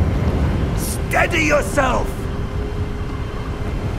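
Wind blows strongly outdoors.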